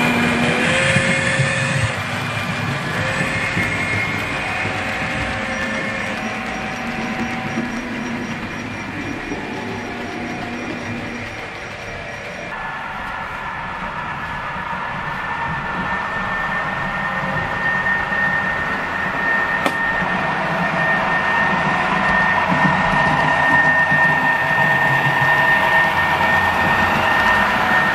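A model train rumbles and clicks along the track.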